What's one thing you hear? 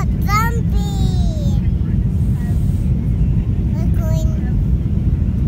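A young girl squeals and talks excitedly close by.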